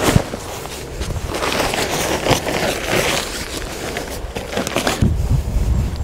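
Fabric rustles and flaps as a tarp is shaken out.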